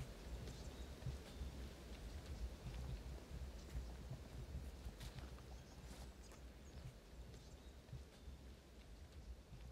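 Footsteps crunch softly on dry forest ground.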